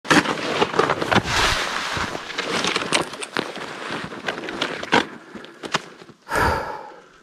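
Footsteps crunch through deep snow close by.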